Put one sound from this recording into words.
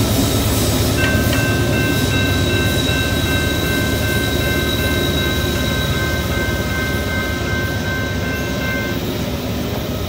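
A train horn sounds a long steady blast.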